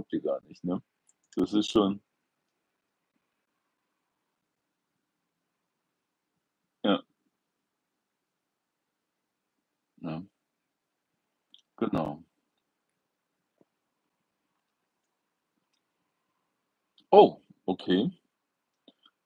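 An older man speaks calmly in short bursts with long pauses, close by.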